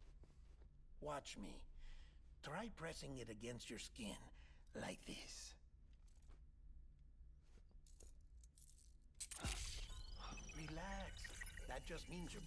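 A middle-aged man speaks calmly and slowly.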